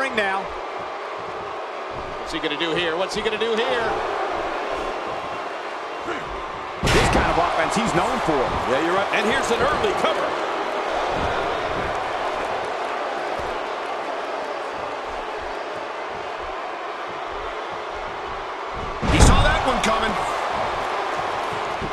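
A crowd cheers and roars steadily in a large arena.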